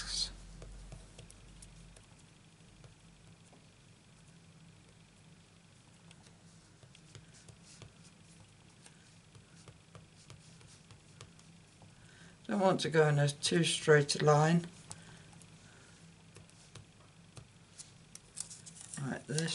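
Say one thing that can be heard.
A clear acrylic stamp taps and presses onto card.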